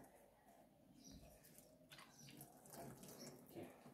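Hands rub and splash in water.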